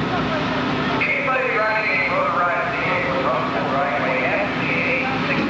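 A motorcycle engine revs up loudly.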